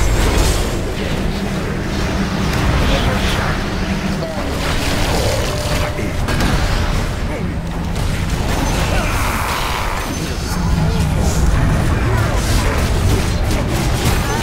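Spell blasts and magical effects crash and whoosh in a busy game battle.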